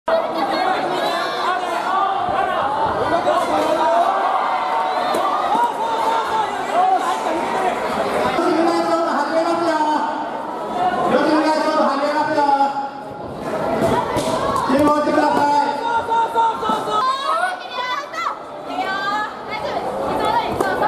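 A crowd of people chatters and shouts loudly in a large echoing hall.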